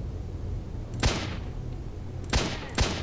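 Gunshots ring out nearby.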